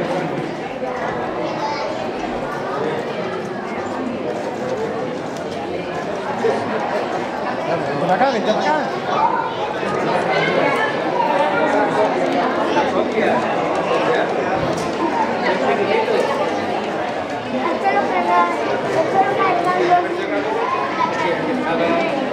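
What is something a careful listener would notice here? A crowd of men and women chatters close by outdoors.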